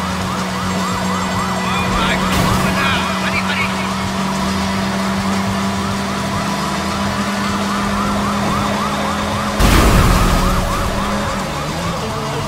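A van engine hums steadily as it drives.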